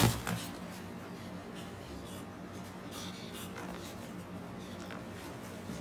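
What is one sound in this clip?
A falcon flaps its wings.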